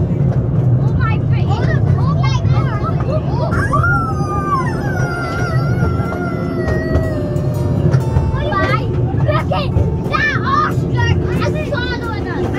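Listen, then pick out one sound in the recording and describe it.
A small train engine rumbles steadily nearby.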